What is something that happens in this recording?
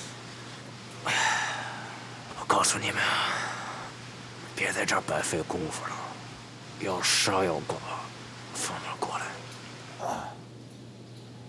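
A middle-aged man speaks weakly and defiantly, close by.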